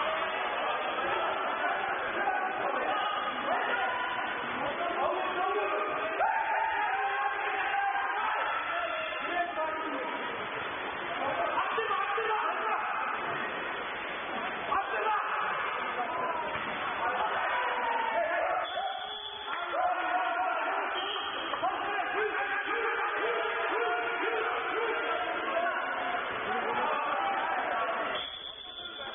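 Young men shout and call out to each other across the water.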